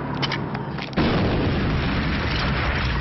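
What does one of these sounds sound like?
A loud explosion booms.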